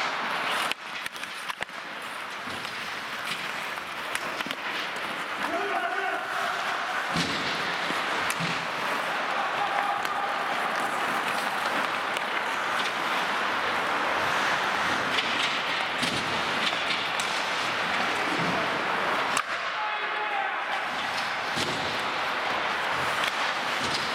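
Hockey sticks clack against a puck and against each other.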